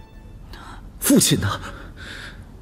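A young man answers in a tense voice.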